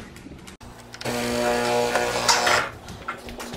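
An espresso machine hums loudly.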